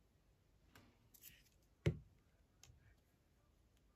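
A plastic cap snaps onto a glue stick.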